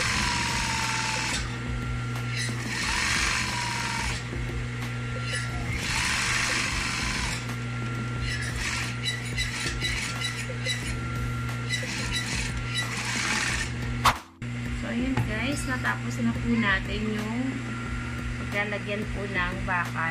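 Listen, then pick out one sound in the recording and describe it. A sewing machine motor hums steadily.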